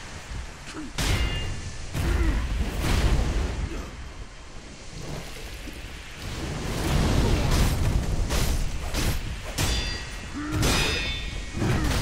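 Heavy blows thud and rumble.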